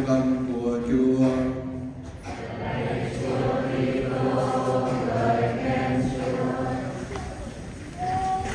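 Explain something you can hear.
An elderly man chants slowly through a microphone in an echoing hall.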